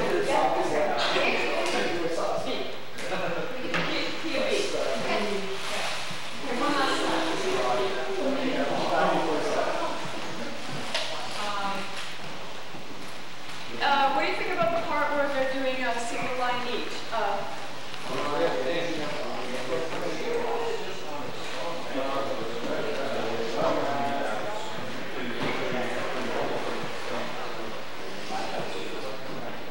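A woman talks with animation in an echoing room.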